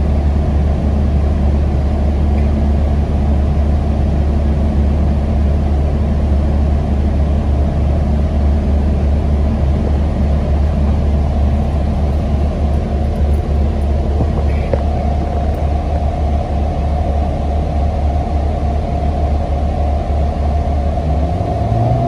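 A bus rattles and hums as it rolls along the road.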